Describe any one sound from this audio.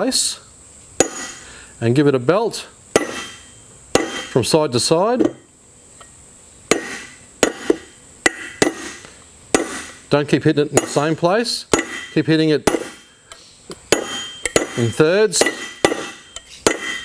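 A hammer taps sharply on a metal bearing race, again and again.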